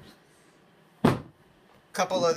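A box knocks against a hard surface.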